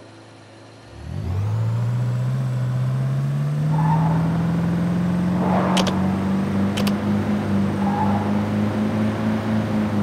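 A car engine starts up and revs steadily as the car drives off over grass.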